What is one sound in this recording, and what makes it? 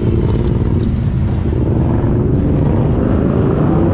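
A car engine hums as a car passes close by.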